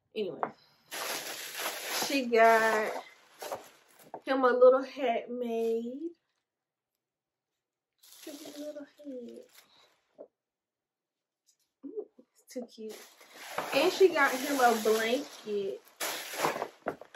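Tissue paper rustles and crinkles.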